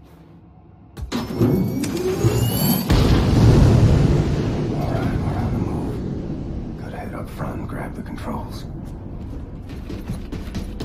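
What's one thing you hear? A rocket engine roars loudly and slowly fades.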